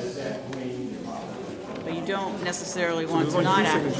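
Paper rustles as large plans are unrolled.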